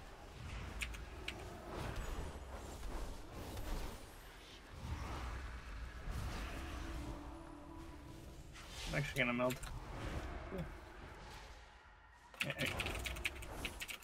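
Spell effects and weapon hits crackle and clash.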